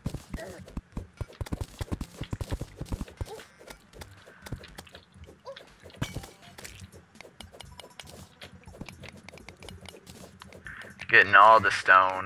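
A pickaxe chips rapidly at stone blocks.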